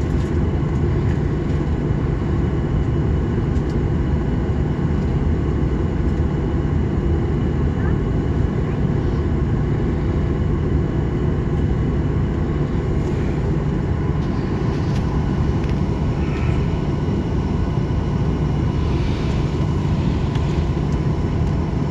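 An aircraft's wheels rumble over the runway.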